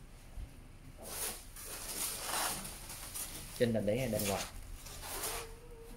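Plastic wrap crinkles and rustles as it is handled.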